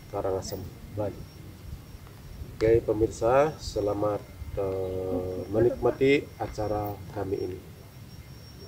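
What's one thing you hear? A middle-aged man speaks calmly outdoors.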